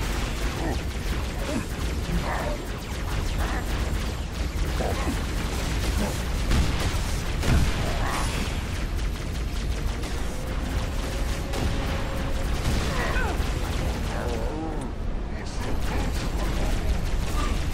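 A plasma gun fires in rapid bursts.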